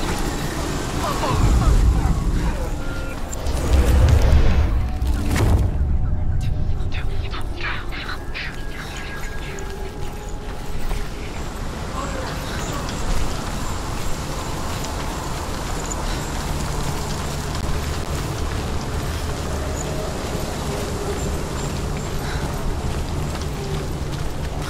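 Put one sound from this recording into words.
Footsteps run across wooden boards and then over stone and earth.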